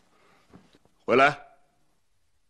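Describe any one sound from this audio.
An older man answers sharply.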